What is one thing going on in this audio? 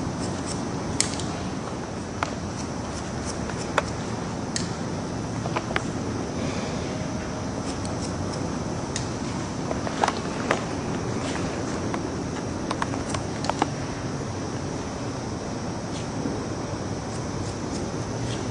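Scissors snip through hair close by.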